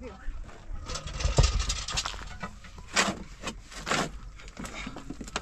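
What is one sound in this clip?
A shovel scrapes and digs into loose soil.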